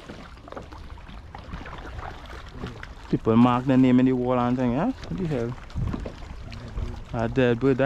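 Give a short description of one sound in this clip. A paddle dips and splashes in water.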